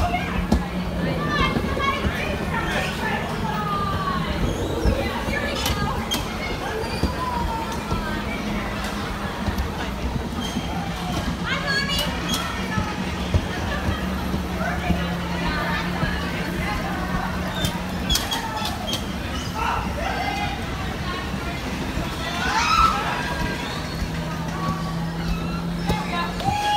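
Bumper cars bump into each other with dull thuds.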